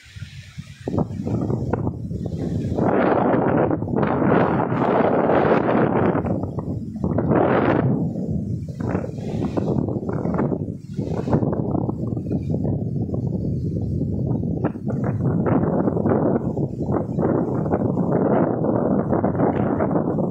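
Strong wind gusts and roars outdoors, buffeting loudly.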